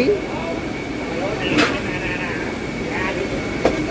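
Water bubbles and splashes in aerated tanks.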